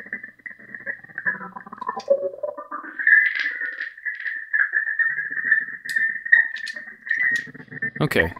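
A footswitch clicks.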